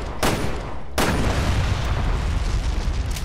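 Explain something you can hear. A loud explosion bursts.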